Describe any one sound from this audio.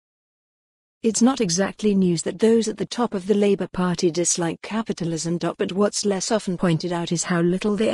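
A young woman speaks cheerfully into a microphone.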